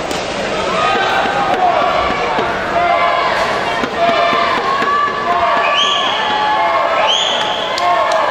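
Swimmers splash and churn through the water in an echoing indoor pool.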